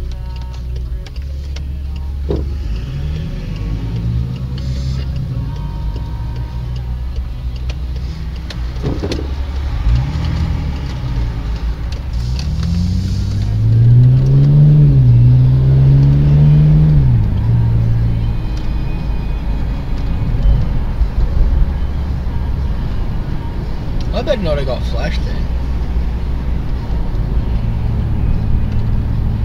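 A car engine hums from inside the car and rises and falls in pitch as it speeds up and shifts gears.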